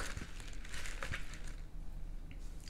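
A fork scrapes against food.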